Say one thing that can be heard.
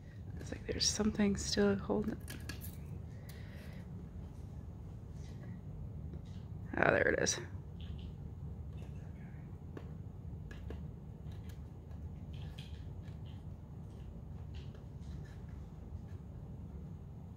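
Fingers tap and click on a small plastic box.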